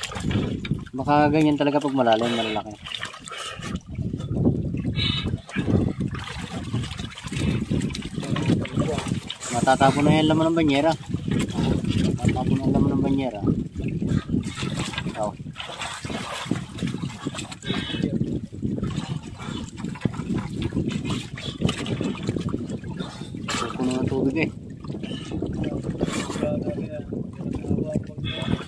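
Water splashes and churns as swimmers move through it.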